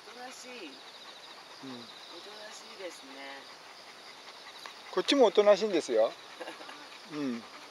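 A dog pants heavily nearby.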